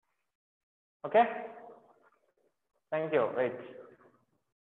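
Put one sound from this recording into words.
A man speaks calmly into a close microphone, in short phrases.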